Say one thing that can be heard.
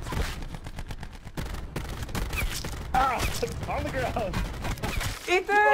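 Rapid gunfire cracks close by.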